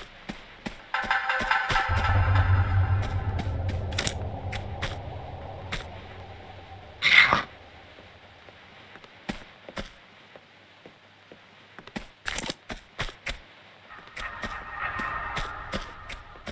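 Footsteps run across a wooden floor.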